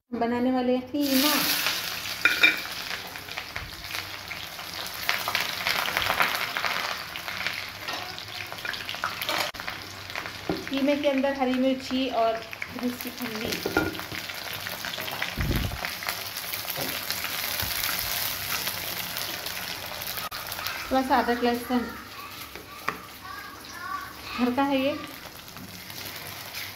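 Hot oil crackles and sizzles steadily.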